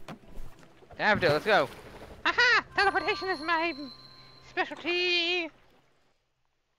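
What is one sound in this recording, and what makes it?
Small cartoon creatures chirp in high, warbling tones.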